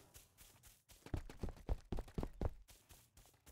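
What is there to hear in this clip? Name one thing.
Footsteps thud steadily across grass.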